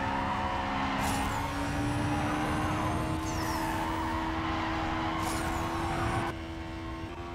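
A racing car engine roars loudly at high speed.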